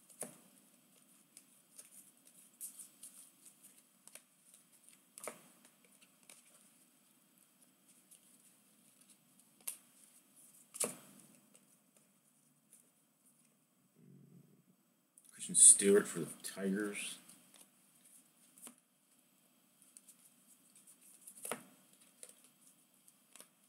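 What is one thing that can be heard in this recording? Trading cards shuffle and slide against each other in a stack.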